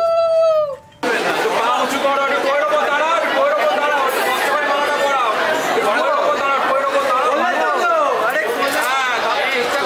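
A crowd cheers and chatters around a couple.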